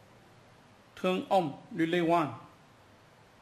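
A voice speaks through a small loudspeaker.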